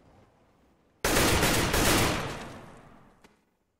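A rifle fires a rapid burst of loud shots that echo briefly.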